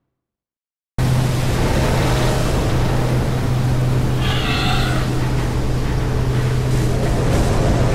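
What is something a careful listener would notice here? Heavy rain pours down outdoors.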